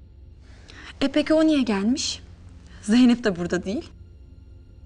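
A young woman speaks calmly and earnestly close by.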